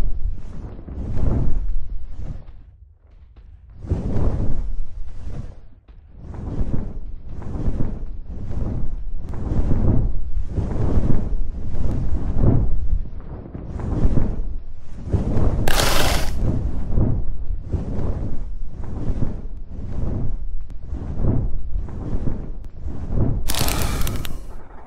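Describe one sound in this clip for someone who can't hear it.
Large wings flap in a steady rhythm.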